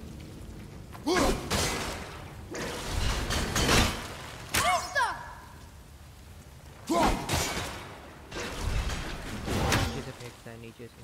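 Loud magical blasts and crashes burst out again and again.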